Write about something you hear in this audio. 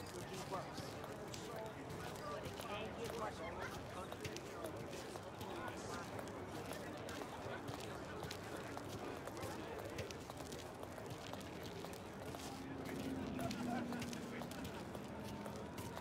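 Footsteps tap steadily on a stone pavement.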